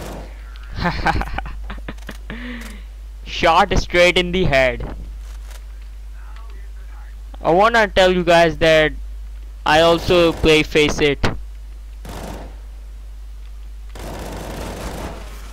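Rifle shots fire in short bursts.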